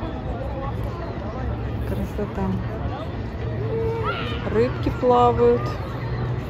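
A crowd of bathers chatters and calls out in the distance outdoors.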